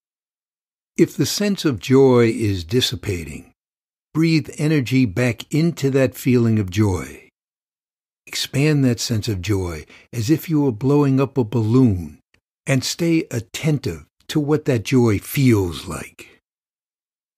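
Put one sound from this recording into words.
A middle-aged man speaks calmly and warmly, close to a microphone.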